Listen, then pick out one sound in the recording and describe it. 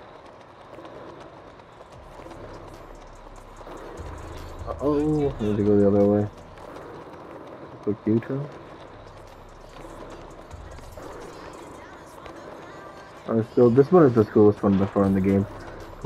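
Skateboard wheels roll over paving stones.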